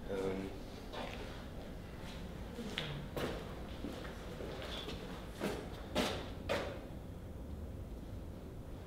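Footsteps tap on a hard floor in a small echoing room.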